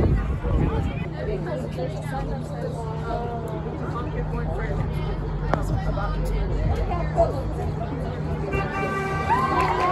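Many young people chatter and murmur in a crowd outdoors.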